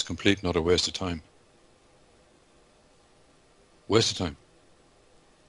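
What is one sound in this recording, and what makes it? A man speaks briefly over an online call, in two short bursts.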